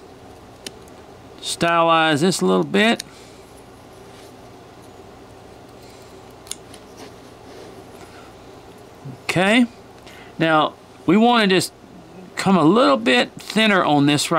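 A knife shaves and scrapes small curls from a piece of wood.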